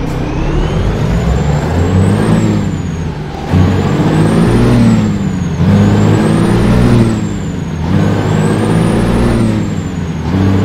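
A truck engine rumbles, revving up and dropping back again and again.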